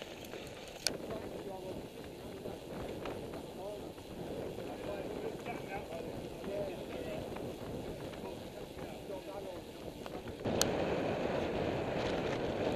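Bicycle tyres hum on a smooth road.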